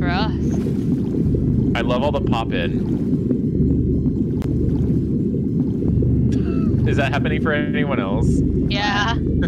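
Water swishes as arms stroke through it underwater.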